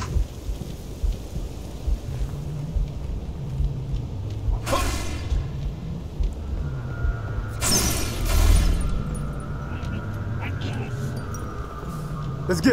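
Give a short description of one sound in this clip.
Heavy armoured footsteps thud across a hard floor.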